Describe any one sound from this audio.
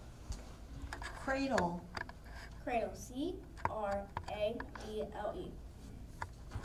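A young girl speaks haltingly into a microphone.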